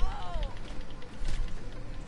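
A fist thuds against a body in a scuffle.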